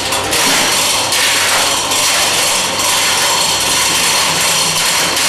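A lathe runs with a steady mechanical whir.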